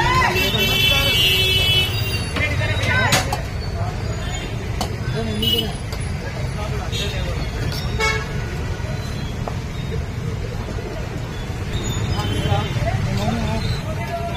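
Ladles clink against metal serving pots.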